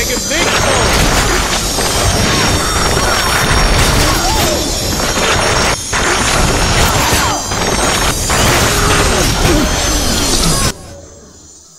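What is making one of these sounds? Magic bursts crackle and whoosh.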